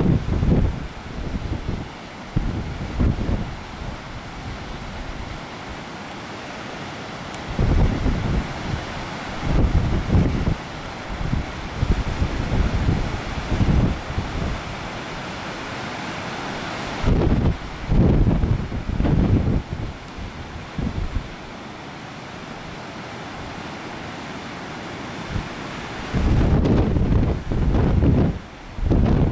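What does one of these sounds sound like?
Waves crash and roar steadily onto the shore.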